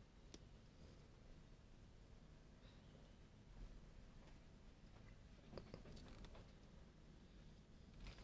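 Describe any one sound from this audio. A stick softly stirs thick wet paint.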